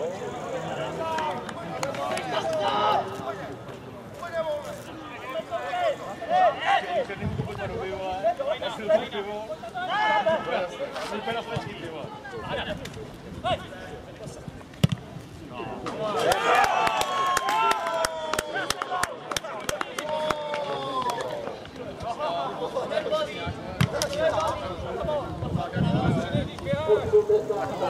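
Young men shout to one another in the distance outdoors.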